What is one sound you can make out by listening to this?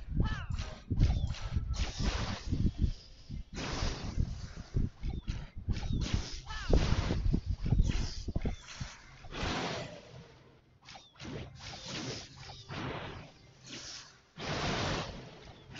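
Cartoonish blasts and thuds from a battle game burst repeatedly.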